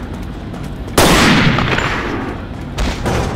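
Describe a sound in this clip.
A gun fires a loud shot that echoes and fades.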